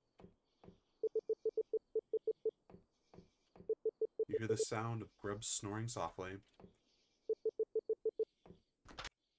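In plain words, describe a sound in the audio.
A game's dialogue text ticks out in quick, evenly spaced beeps.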